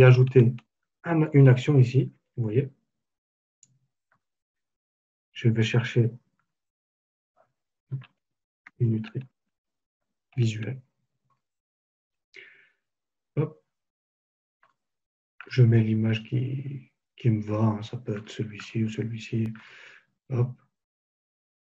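A man speaks calmly into a close microphone, in bursts with pauses.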